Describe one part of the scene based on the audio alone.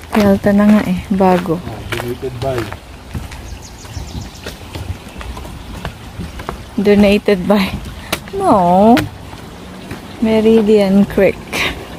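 Footsteps thud on a wooden bridge.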